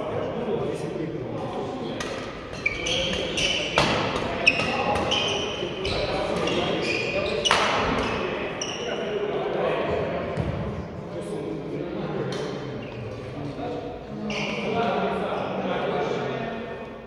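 Badminton rackets smack shuttlecocks in a large echoing hall.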